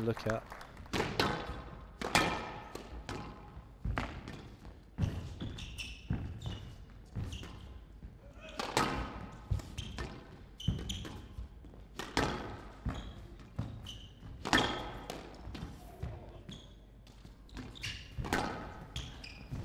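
A squash ball is struck hard by racquets and smacks against the walls.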